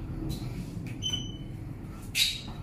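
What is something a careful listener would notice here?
A lift button beeps when pressed.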